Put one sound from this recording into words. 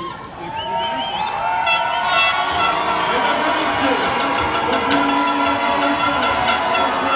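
A large crowd cheers and applauds in a big echoing hall.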